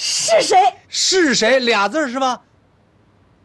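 A woman calls out cheerfully.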